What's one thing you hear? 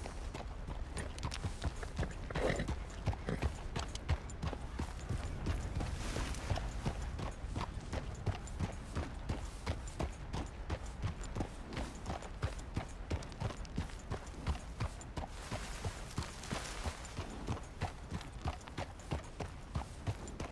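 Horse hooves clop steadily on a rocky trail.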